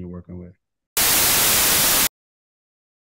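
Loud static hisses briefly.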